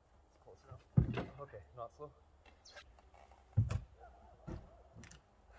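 A heavy wooden box thuds and knocks.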